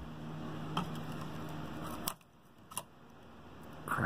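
A small metal tool clicks and scrapes against a circuit board.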